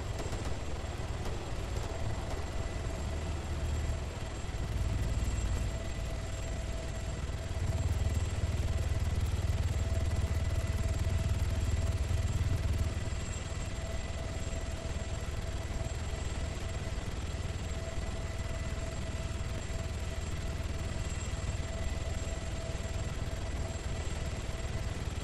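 A helicopter's engine whines steadily.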